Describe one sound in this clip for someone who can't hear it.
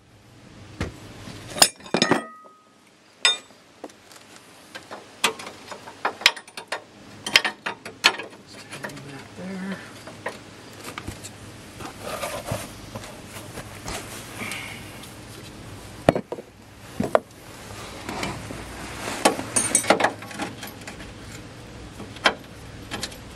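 Metal tools clink and knock against metal parts.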